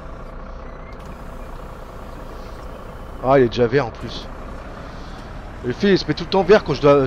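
A bus engine hums steadily at idle.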